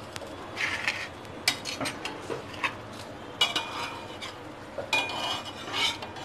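Flatbread sizzles softly in a hot pan.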